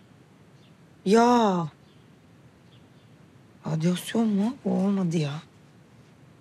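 A young woman answers with surprise, close by.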